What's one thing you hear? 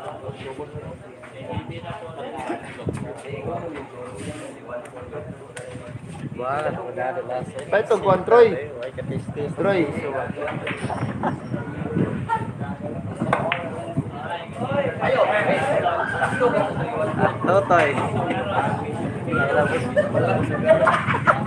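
A crowd of young men and women chatter and call out nearby.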